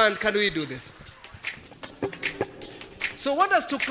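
A crowd of people clap their hands in rhythm.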